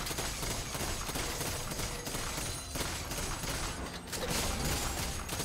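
Game combat effects crackle and whoosh.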